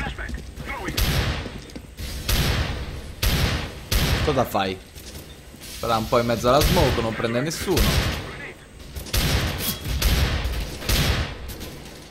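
A pistol fires single shots.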